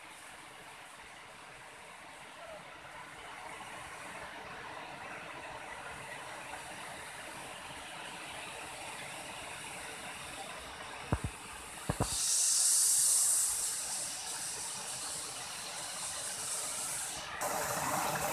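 A waterfall rushes and splashes steadily nearby.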